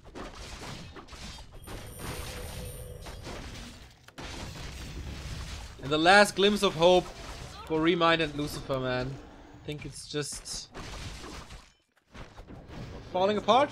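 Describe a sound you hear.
Game weapons clash and spells burst in a fight.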